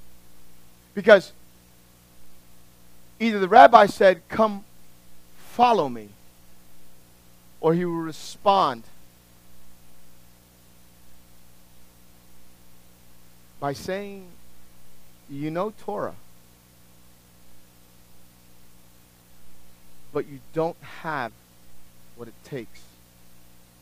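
A middle-aged man speaks into a microphone in short bursts with long pauses, heard through a loudspeaker in a room.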